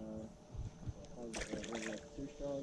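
A small fish drops into the water with a splash.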